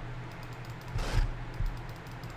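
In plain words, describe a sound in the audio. A heavy blow thuds against a body.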